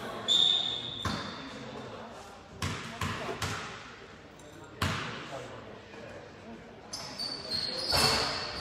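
A basketball bounces with echoing thuds in a large gym.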